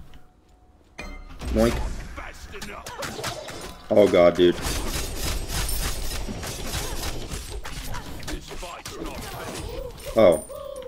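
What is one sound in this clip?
Game weapons clash and whoosh with sharp hits.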